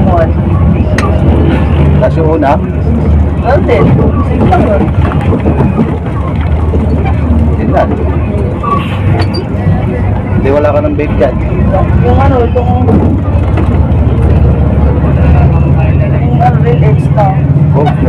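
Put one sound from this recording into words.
A bus engine drones with a low hum inside the cabin.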